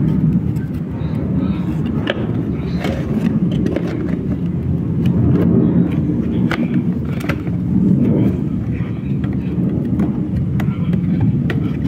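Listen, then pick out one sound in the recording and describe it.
Cardboard packaging rustles and scrapes as hands open a box.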